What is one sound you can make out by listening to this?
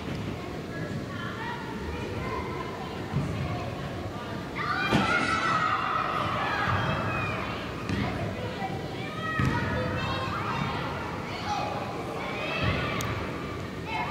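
Young women shout and call to each other across a large echoing hall.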